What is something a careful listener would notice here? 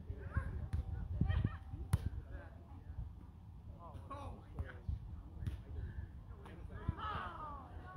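A volleyball is struck with hands with a dull smack.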